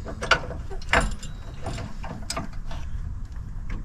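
A jack handle clicks and clanks as it is cranked.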